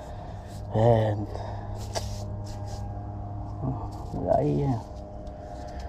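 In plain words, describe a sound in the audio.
A gloved hand rubs over a rough concrete ledge.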